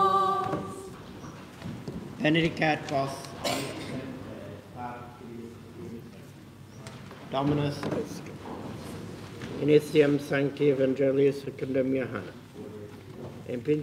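A man chants and speaks in a steady, solemn voice in an echoing room.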